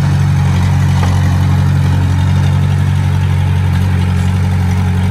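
A small bulldozer's diesel engine rumbles steadily close by.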